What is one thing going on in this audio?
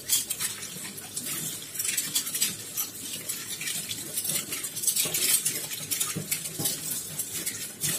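Cutlery rattles as it is scrubbed under running water.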